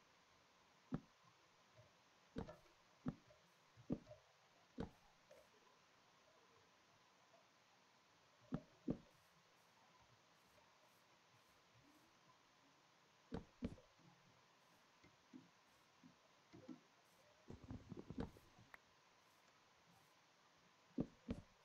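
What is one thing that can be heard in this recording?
Wooden blocks are set down with short, dull knocks.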